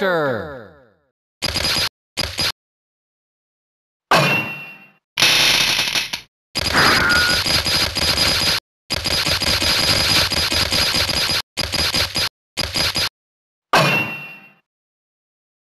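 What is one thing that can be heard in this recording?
Short electronic game menu sounds play in bursts.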